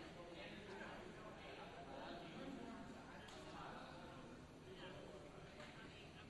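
A group of people chatter far off in a large echoing hall.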